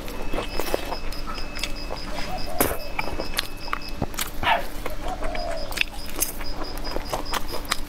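A young woman slurps noodles loudly, close to a clip-on microphone.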